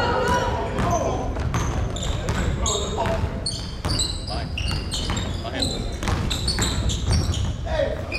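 Young men call out to each other across a large echoing gym.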